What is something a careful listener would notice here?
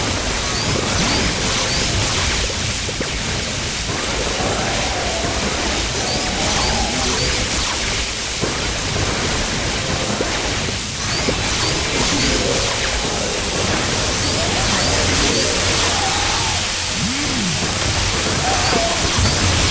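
Game shots fire in quick, repeated bursts.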